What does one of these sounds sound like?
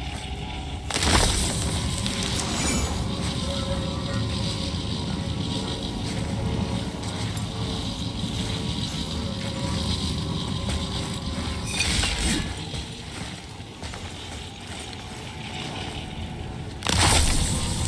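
An axe smashes into something brittle with a loud, shattering crash.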